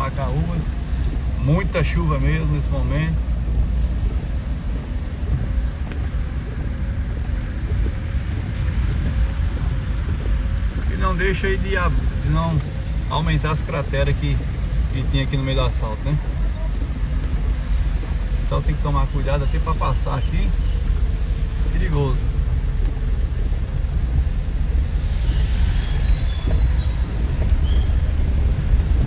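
Rain drums steadily on a car's roof and windshield.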